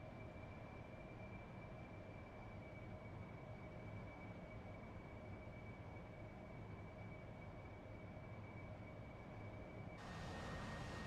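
A jet engine whines, muffled, from inside a cockpit.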